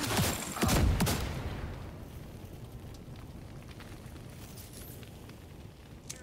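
Fire crackles.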